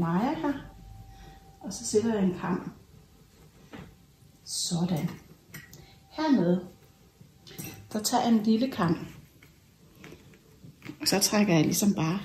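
A woman talks calmly in short phrases, close by.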